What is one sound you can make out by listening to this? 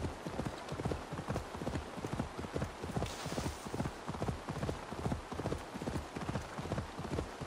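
A horse gallops steadily over soft ground.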